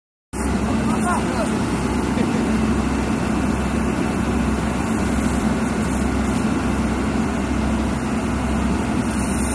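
A drilling rig's engine runs with a loud, steady rumble.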